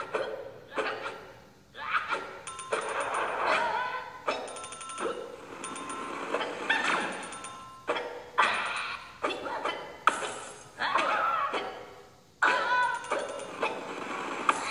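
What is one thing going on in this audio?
A handheld game plays bright chiming sound effects and jingles.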